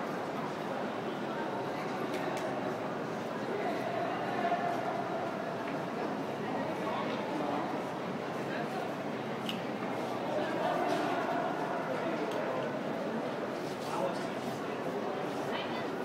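A man talks softly to a small child nearby.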